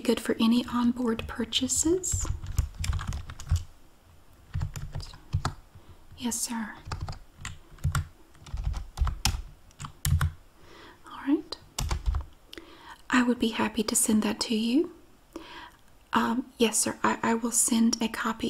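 A woman speaks calmly into a close headset microphone.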